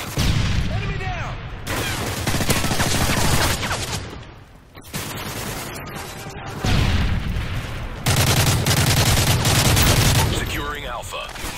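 Gunfire and explosions boom from a video game.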